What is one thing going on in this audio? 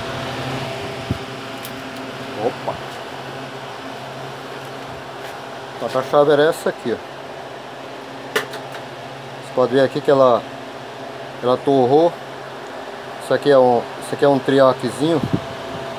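An electric fan hums steadily nearby.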